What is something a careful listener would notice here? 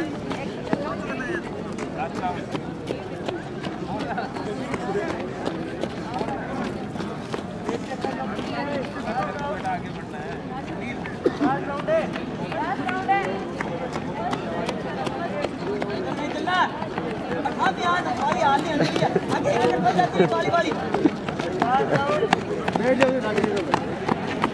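A crowd murmurs and chatters outdoors.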